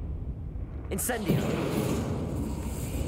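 Fire bursts and roars.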